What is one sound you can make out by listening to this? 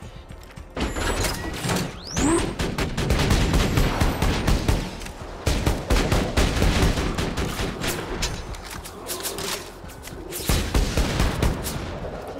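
A gun fires in rapid bursts of loud shots.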